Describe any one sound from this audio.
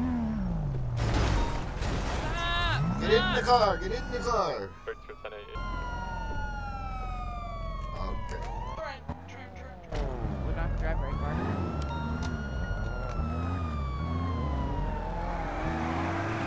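A police siren wails and sweeps up and down.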